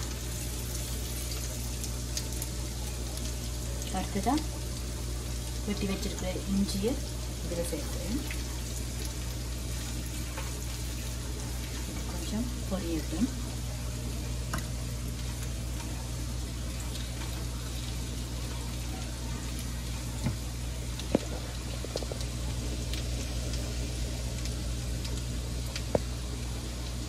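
A spatula scrapes and taps against a frying pan.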